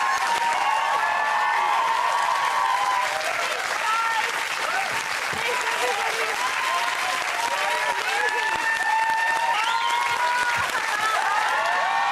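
A studio audience cheers, whoops and applauds loudly.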